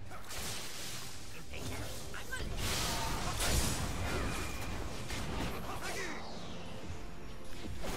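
Magic spells whoosh and blast in a fast video game fight.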